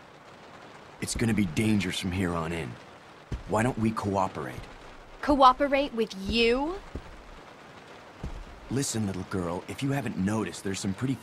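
A young man speaks in a low, calm voice.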